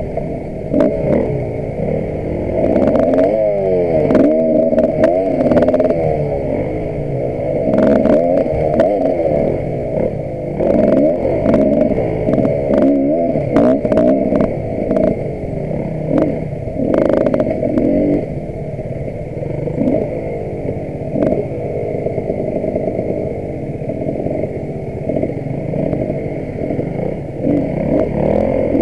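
Another dirt bike engine buzzes a short way ahead.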